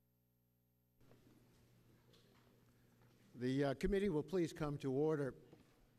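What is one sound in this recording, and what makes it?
A crowd murmurs quietly in the background.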